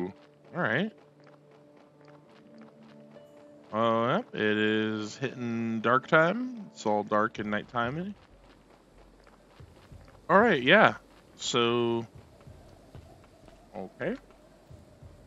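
Footsteps patter steadily on a dirt path.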